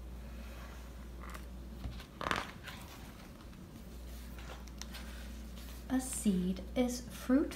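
A paper page of a book turns with a soft rustle.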